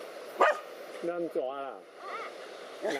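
A dog whines in a high voice.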